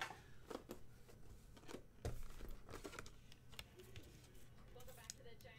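Cardboard and packs rustle and tap as they are handled.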